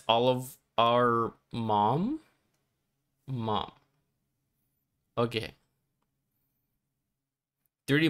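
A young man speaks with animation into a close microphone, in short bursts.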